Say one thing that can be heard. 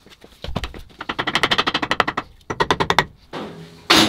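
A ratchet wrench clicks rapidly on an engine bolt.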